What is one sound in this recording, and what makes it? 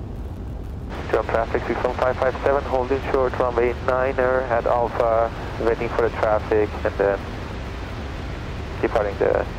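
A young man talks calmly through a headset microphone over the engine noise.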